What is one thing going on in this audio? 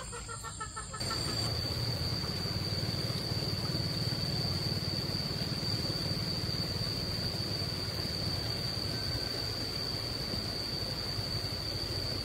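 Water flows steadily in a river.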